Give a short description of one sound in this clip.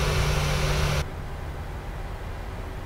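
Jet engines hum more quietly, heard from inside a cockpit.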